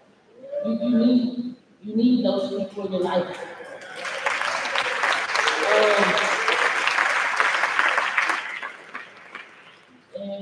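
A woman speaks with animation through a microphone and loudspeakers in a large echoing hall.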